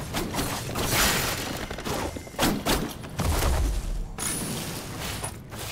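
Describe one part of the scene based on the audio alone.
A blade swooshes through the air in quick slashes.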